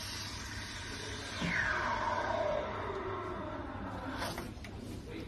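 A steam wand hisses as it froths milk in a metal jug.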